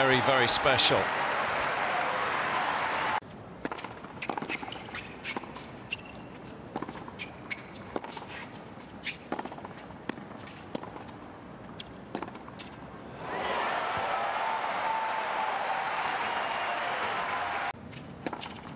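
A crowd applauds and cheers in a large open arena.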